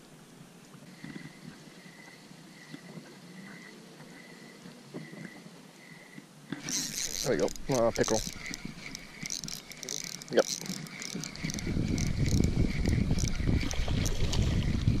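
A fishing reel whirs and clicks as its handle is cranked.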